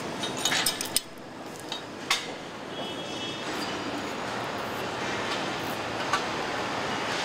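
Metal tools clank and knock.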